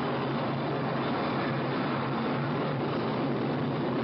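A rocket roars as it lifts off.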